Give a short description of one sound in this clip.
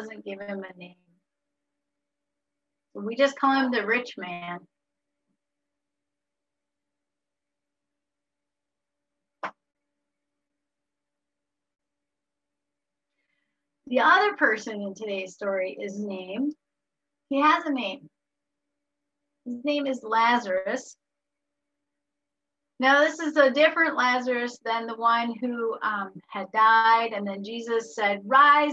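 A woman speaks with animation over an online call, in bursts with pauses.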